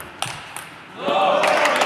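Spectators clap and cheer at the end of the rally.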